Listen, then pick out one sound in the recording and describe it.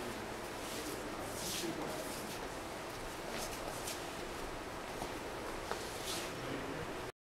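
Elderly people murmur and talk quietly in a large echoing hall.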